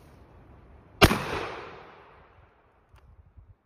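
A shotgun fires a loud shot that echoes through the woods.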